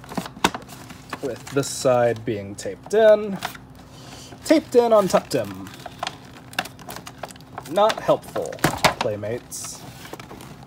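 Fingers handle and tap a cardboard and plastic toy box, with light rustling and clicks.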